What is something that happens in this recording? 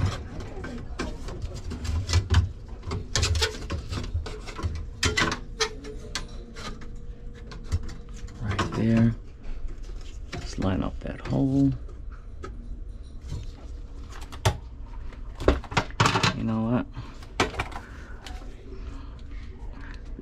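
A metal wire rack rattles and clanks against metal.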